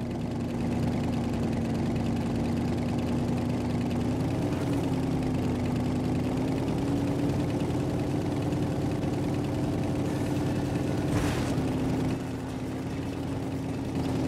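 A hover vehicle's engine hums steadily, rising and falling slightly in pitch.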